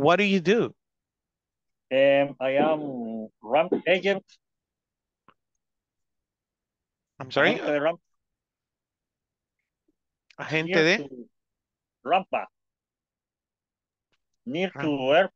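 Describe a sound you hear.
A young man speaks with animation over an online call, in short bursts with pauses.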